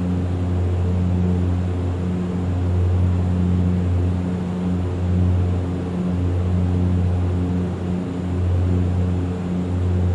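A propeller engine drones steadily with a low, pulsing hum.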